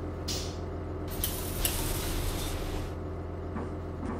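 Pneumatic bus doors hiss open.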